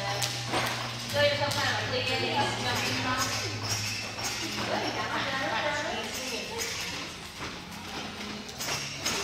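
Young girls chatter and call out in a large echoing hall.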